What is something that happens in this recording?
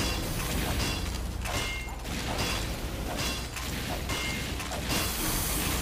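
A game gun fires in rapid bursts.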